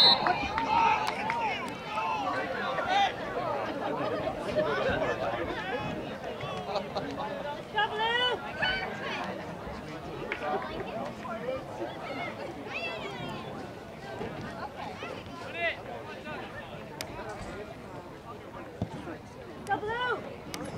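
Players shout to each other across an open field, heard from a distance.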